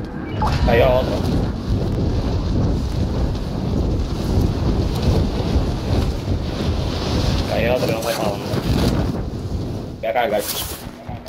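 Wind roars loudly and steadily during a fast fall through the air.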